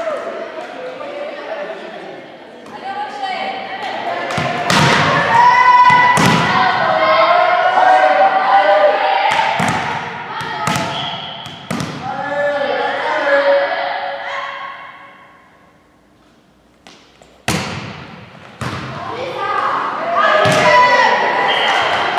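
Young girls shout and cheer loudly in an echoing hall.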